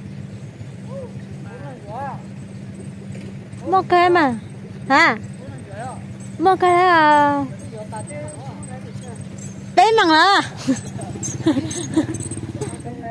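A young woman speaks animatedly close by.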